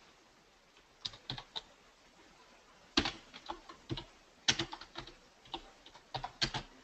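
Keys click on a computer keyboard in quick, uneven bursts of typing.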